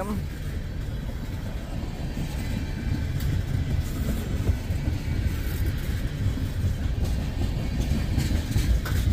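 A crossing bell rings steadily.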